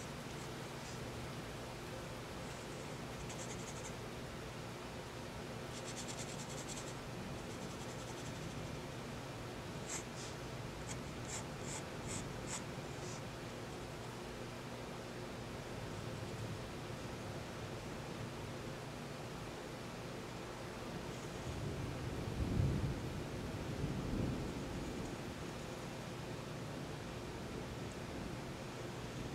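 A pencil scratches and taps lightly on paper.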